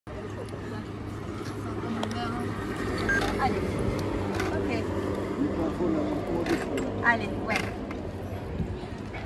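An accordion plays a lively tune close by.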